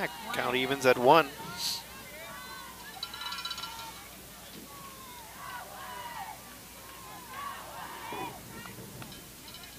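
Young women shout and cheer outdoors across an open field.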